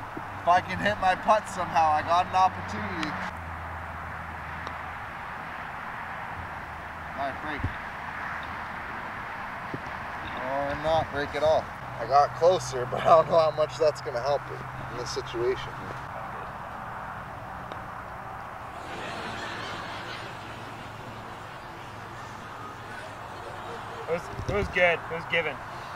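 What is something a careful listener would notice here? Men talk casually outdoors.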